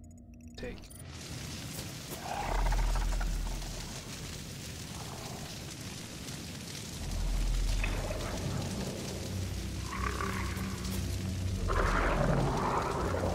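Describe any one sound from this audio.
Fires roar and crackle in the distance.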